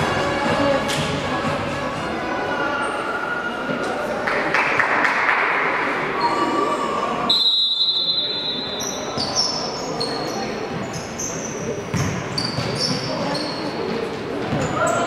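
Players call out across a large echoing hall.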